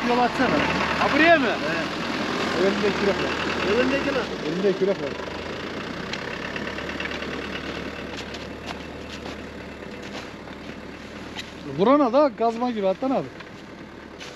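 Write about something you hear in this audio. An elderly man talks with animation nearby.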